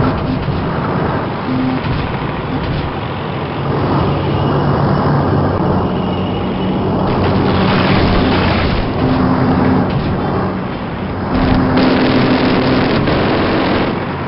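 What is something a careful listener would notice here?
A tank engine rumbles and clanks steadily as the tank rolls along.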